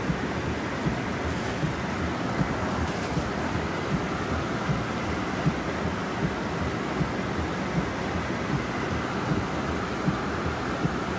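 Heavy rain drums on a car's windscreen.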